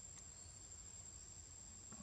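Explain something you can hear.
A baby monkey nibbles softly on a leaf.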